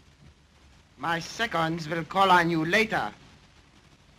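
A young man speaks firmly in a quiet room.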